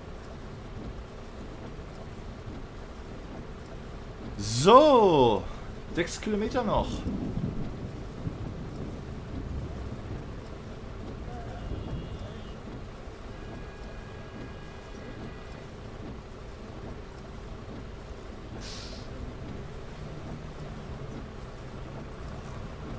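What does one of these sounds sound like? Rain patters on a windscreen.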